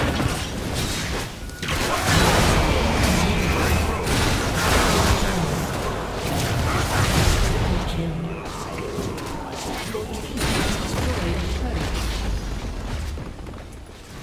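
Game combat sounds clash and burst loudly with spell effects.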